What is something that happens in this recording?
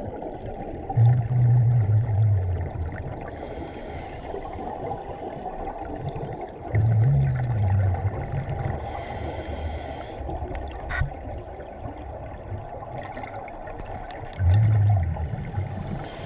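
A diver breathes in through a regulator with a low, rasping drone, again and again.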